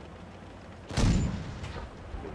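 A tank cannon fires with a heavy boom.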